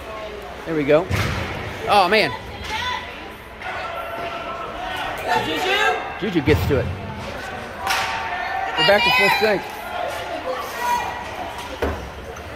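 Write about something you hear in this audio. Hockey sticks clack against a puck with sharp echoing smacks.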